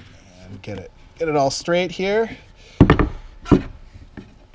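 A wooden block knocks against a wooden tabletop.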